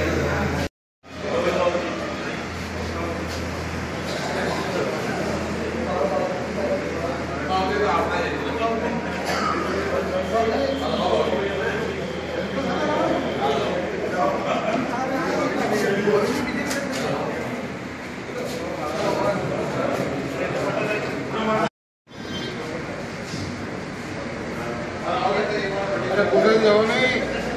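A crowd of men chatter and talk over one another nearby.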